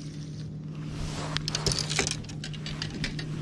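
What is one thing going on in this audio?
Fishing rods knock and clatter against a boat deck.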